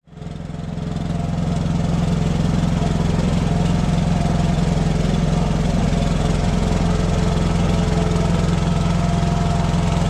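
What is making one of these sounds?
A small engine chugs steadily and loudly close by.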